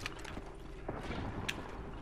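A gun fires in sharp single shots.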